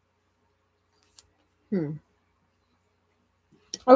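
Small tools tap and click on a table.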